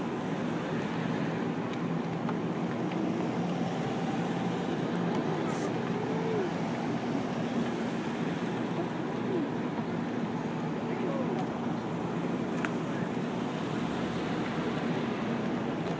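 Police vehicles roll past at low speed in a slow procession, engines humming and tyres on asphalt.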